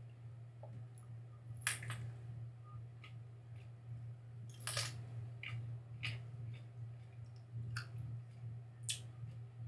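A crisp pepper crunches and snaps as a man tears it apart.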